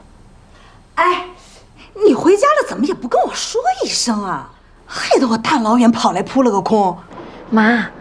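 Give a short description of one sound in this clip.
A middle-aged woman speaks over a phone, complaining with animation.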